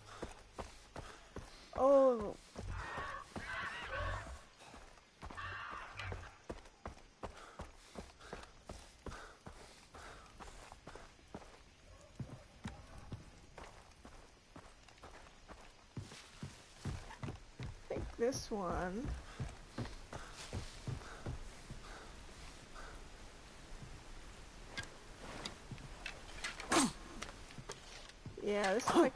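Footsteps crunch steadily along a dirt path.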